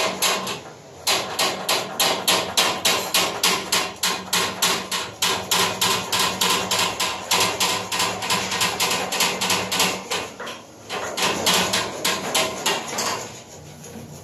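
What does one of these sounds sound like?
A hand tool clicks rapidly and steadily close by.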